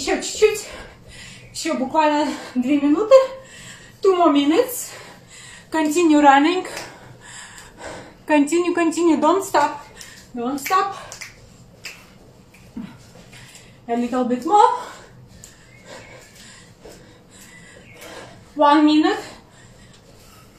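A woman speaks with animation close by, in short bursts.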